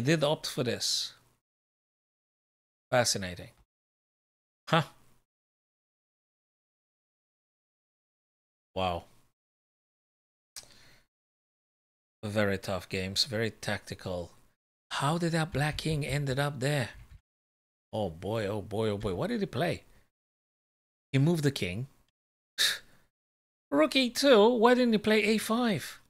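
A man talks with animation, close to a microphone, with pauses.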